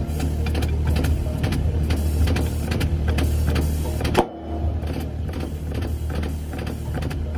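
A lathe motor hums steadily as metal spins.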